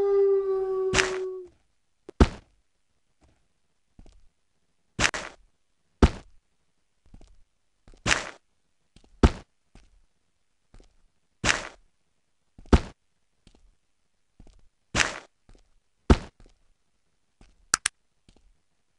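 Sharp clicks come in quick pairs, like items being picked up and set down.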